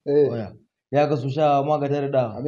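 A man talks with animation in a small room.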